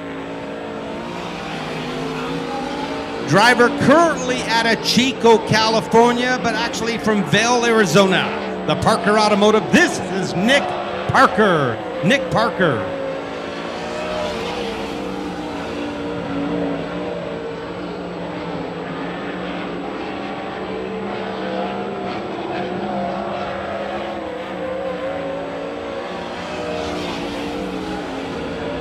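A race car engine roars steadily.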